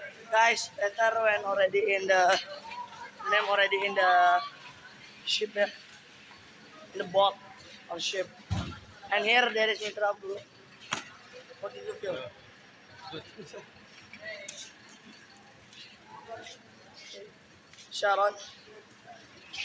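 A teenage boy talks with animation close to the microphone.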